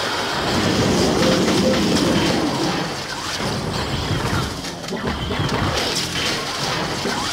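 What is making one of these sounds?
Game sound effects pop and zap rapidly.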